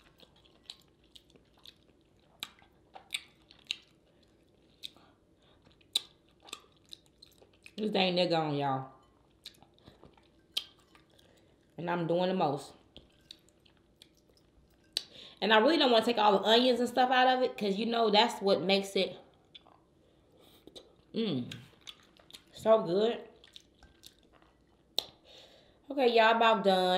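A woman slurps and chews food noisily.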